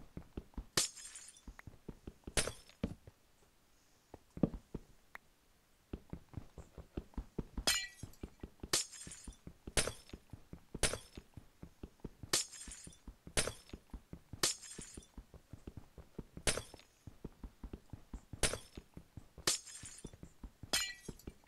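Ice blocks break with a sharp crunching crash, again and again.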